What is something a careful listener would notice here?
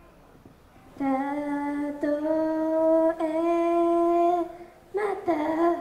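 A young woman sings a long held note through a microphone.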